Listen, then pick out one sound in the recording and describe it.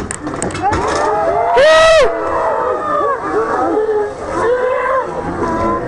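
Young women scream loudly together outdoors.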